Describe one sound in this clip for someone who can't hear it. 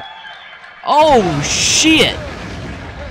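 A fire bursts into flames with a loud whoosh.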